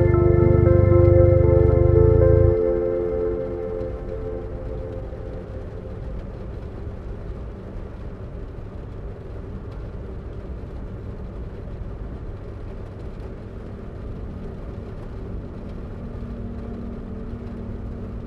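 A car engine roars loudly, then drops to a low rumble.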